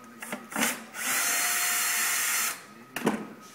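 A power drill whirs briefly.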